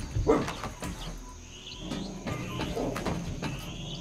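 Boots clank on metal ladder rungs.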